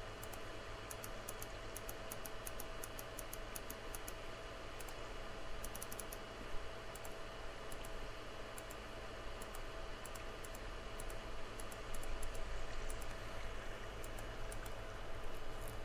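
Mouse buttons click quickly, again and again.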